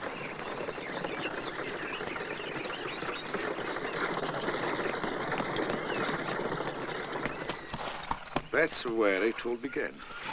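Hooves clop as a horse pulls a carriage.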